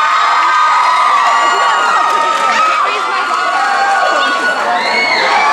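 An audience cheers and screams loudly in a large echoing hall.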